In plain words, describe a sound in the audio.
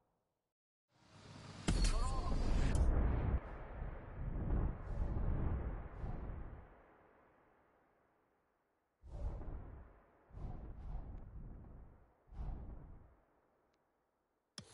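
A deep whoosh swells and fades as a game map zooms in.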